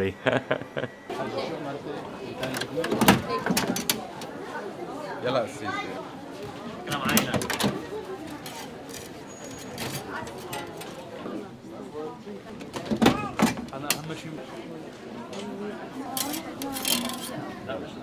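A crowd murmurs in a busy, bustling space.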